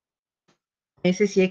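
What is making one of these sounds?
A woman speaks through an online call microphone.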